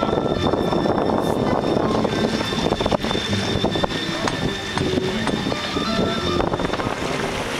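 Strong wind buffets and roars outdoors throughout.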